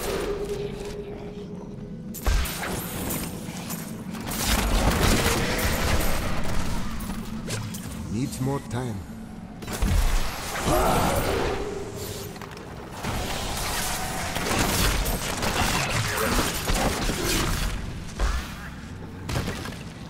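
Spells and weapons crash and boom in a game battle.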